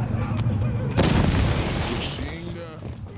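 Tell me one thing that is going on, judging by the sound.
A gun fires with a loud, sharp blast.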